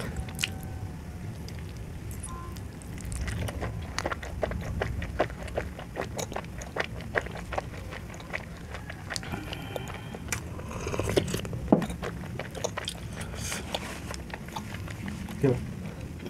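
Close, wet chewing and smacking sounds come through a sensitive microphone.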